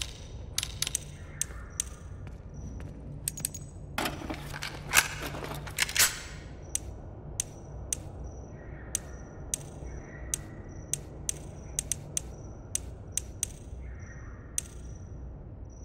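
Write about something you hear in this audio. Short electronic clicks tick repeatedly as a menu is scrolled.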